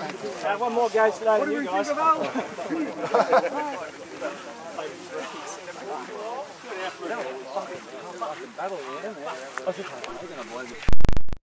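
Several young men talk and shout together close by, outdoors.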